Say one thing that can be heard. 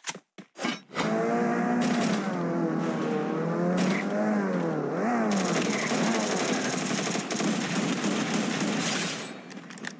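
A car engine revs and hums, rising and falling in pitch.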